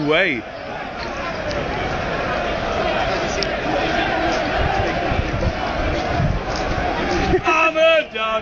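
A large crowd chatters and sings outdoors.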